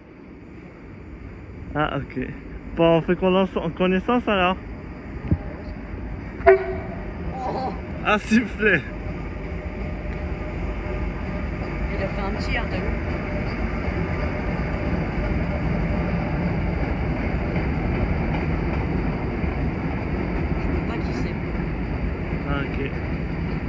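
A freight train rumbles past on the tracks, growing louder as it nears.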